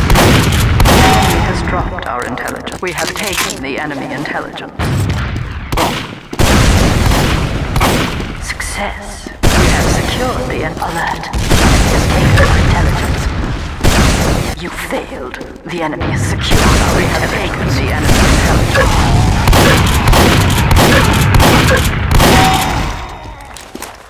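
Shotguns fire in sharp blasts.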